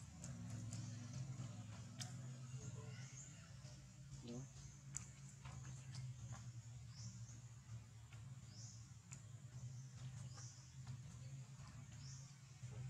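A small monkey scampers and shuffles on mossy stone nearby.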